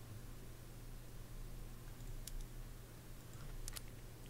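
A soft click sounds as a menu opens.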